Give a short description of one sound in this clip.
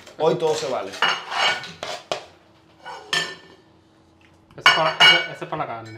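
A knife taps on a ceramic plate.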